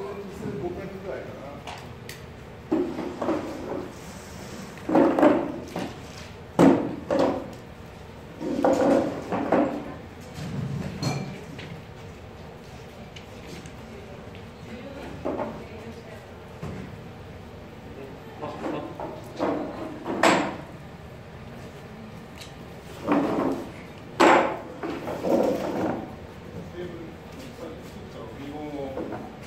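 Several men and women talk in short bursts in a large echoing hall.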